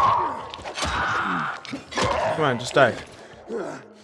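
A blade strikes flesh with wet, heavy thuds.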